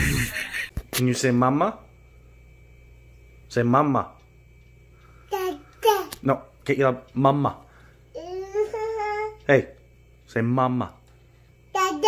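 A woman coaxes a toddler to speak, talking gently and close by.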